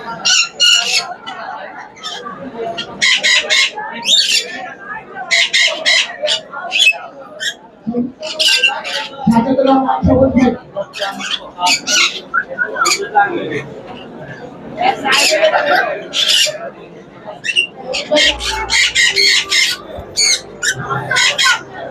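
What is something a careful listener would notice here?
Parrots screech and squawk loudly in short, repeated bursts nearby.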